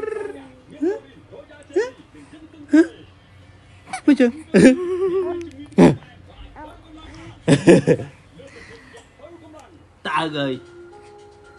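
A baby coos and squeals nearby.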